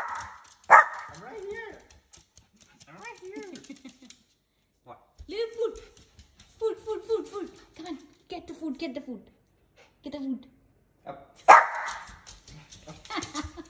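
A small dog whines and howls in wavering tones.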